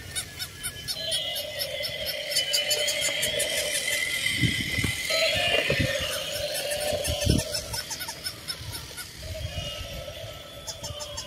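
A battery-powered toy elephant plays electronic sounds as it walks.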